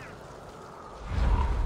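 A large bird's wings flap and whoosh through the air.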